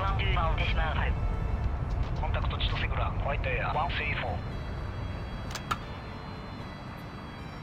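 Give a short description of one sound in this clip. A jet engine rumbles low and steady as an airliner taxis.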